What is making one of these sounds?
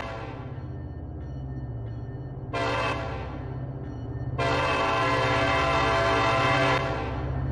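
A diesel locomotive engine rumbles steadily as a train approaches.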